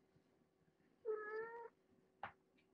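A kitten meows briefly.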